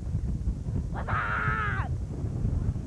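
A young man shouts close to the microphone.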